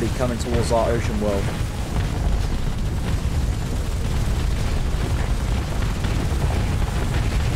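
Explosions boom with a deep, steady rumble.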